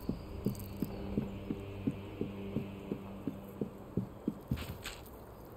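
Quick footsteps tap on a stone floor.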